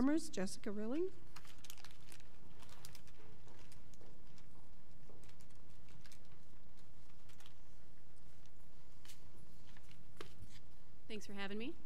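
A woman speaks through a microphone in a large room.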